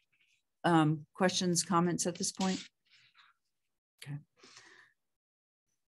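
A middle-aged woman speaks calmly and close to the microphone, heard through an online call.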